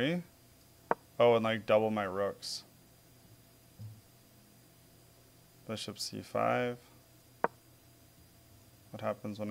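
A man talks calmly into a close microphone, in short bursts with pauses.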